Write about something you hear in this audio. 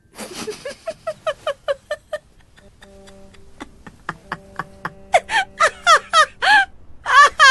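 A young woman laughs loudly and freely nearby.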